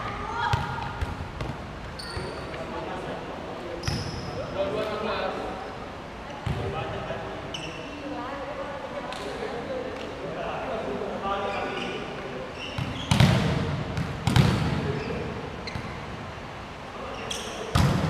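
A ball thuds loudly as players hit it.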